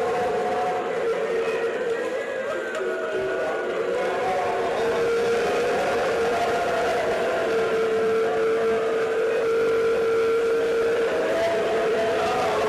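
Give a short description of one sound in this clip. An elderly man chants in a long, sustained melodic voice through a microphone and loudspeakers.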